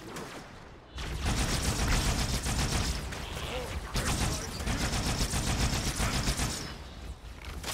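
A weapon fires rapid bursts amid loud blasts.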